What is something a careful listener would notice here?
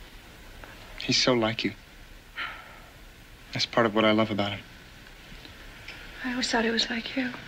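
A young woman speaks softly and with distress, close by.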